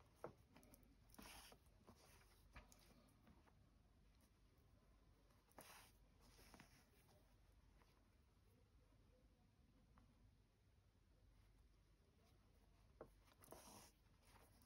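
Fabric rustles softly.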